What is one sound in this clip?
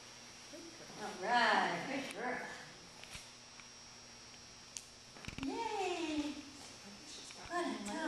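A woman speaks in a high, encouraging voice nearby.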